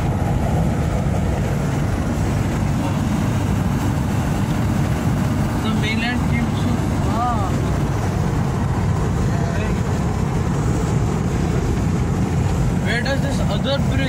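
A car engine hums and tyres rumble steadily on the road.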